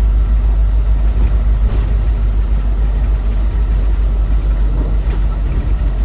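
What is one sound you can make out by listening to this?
Tyres roll and hiss on a road.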